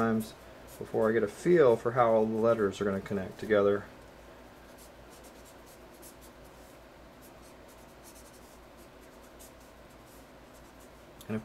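A felt marker squeaks and rubs softly across paper.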